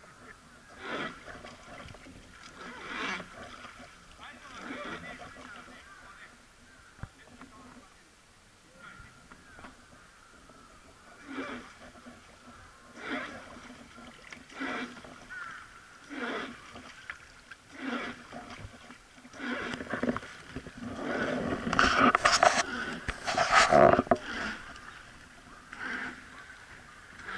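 An oar splashes into river water in regular strokes.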